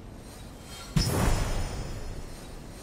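A soft game chime rings out with a whooshing swell.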